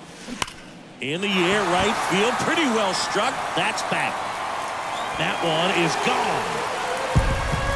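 A crowd in a stadium cheers loudly.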